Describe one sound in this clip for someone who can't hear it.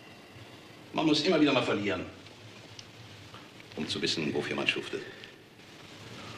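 A middle-aged man speaks in a low, weary voice.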